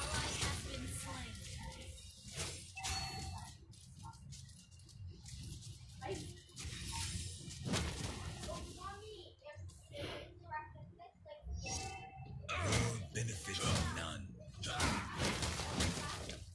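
Game sound effects clash and whoosh during a fight.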